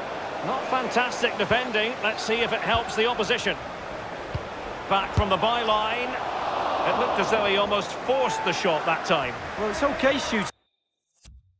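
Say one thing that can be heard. A large crowd roars and chants in a stadium.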